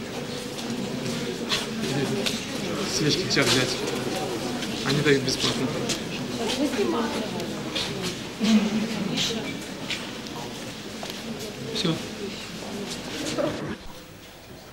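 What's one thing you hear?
Several people murmur and talk quietly in a large echoing room.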